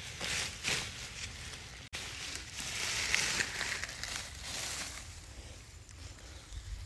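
Dry grass rustles and roots tear as a plant is pulled up from the ground.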